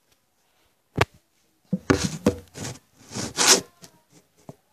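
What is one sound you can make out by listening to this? Knocks and rustles sound right up close.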